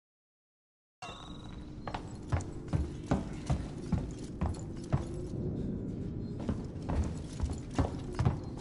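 Footsteps clank on metal stairs and floor.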